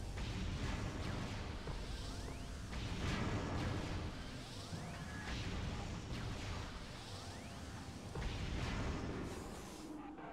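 An arm cannon fires bursts of energy shots with loud blasts.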